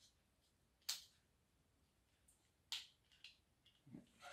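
A plastic tool clicks and snaps.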